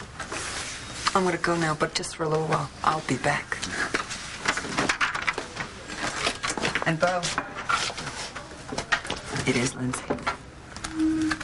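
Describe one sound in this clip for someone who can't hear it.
A woman speaks with a smile, close by.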